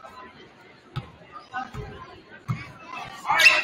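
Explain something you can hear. A basketball thumps on a wooden floor as it is dribbled.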